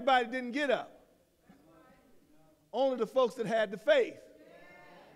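A man speaks loudly and with animation into a microphone, echoing through a large hall.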